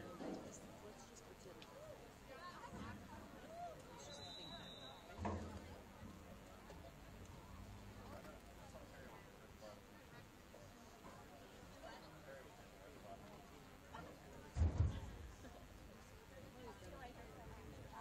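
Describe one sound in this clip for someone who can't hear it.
A crowd of young players and spectators chatter at a distance outdoors.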